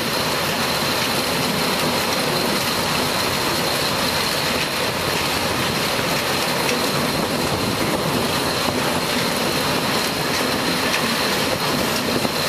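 Cut cane stalks clatter and thud into a metal wagon.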